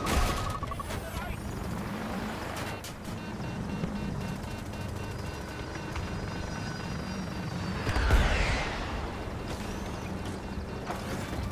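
A helicopter's rotor thumps and whirs.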